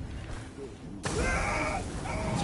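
A fire bursts into flames with a loud roar.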